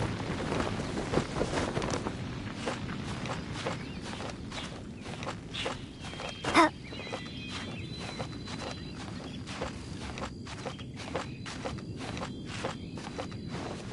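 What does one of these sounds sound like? Hands and feet scrape and tap on rock in a steady rhythm.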